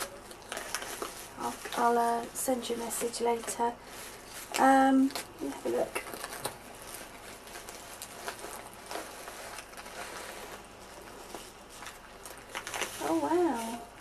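A padded paper envelope rustles and crinkles as it is handled.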